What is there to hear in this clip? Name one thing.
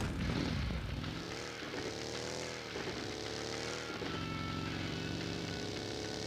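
A buggy engine revs and hums as it drives.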